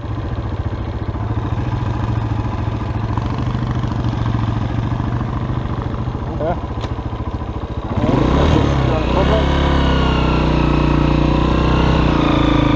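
A motorcycle engine idles close by, then revs up louder.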